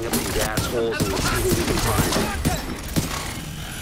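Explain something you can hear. A gun fires in sharp bursts.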